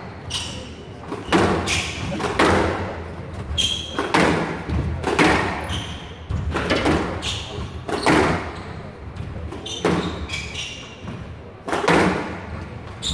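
A squash ball smacks hard off the walls, echoing in a large hall.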